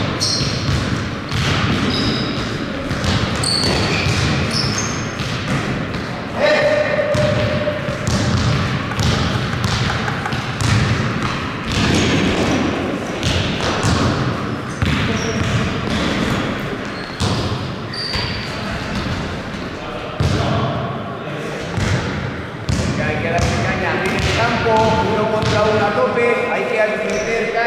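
Basketballs bounce on a hard floor in a large echoing hall.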